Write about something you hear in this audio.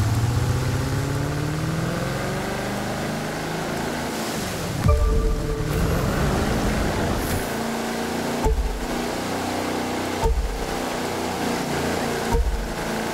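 A speedboat engine roars steadily, rising and falling in pitch.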